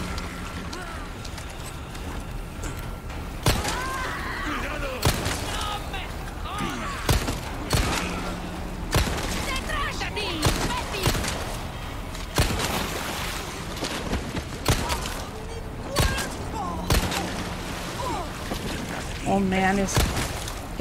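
Attacking figures groan and shout roughly.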